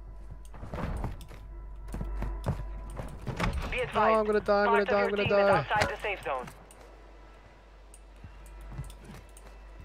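Footsteps thud quickly on wooden stairs and floors.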